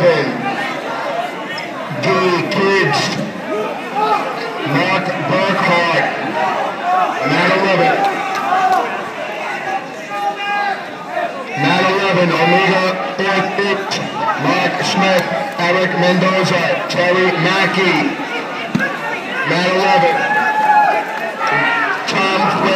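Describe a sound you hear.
A crowd of men and women chatters and calls out in a large echoing hall.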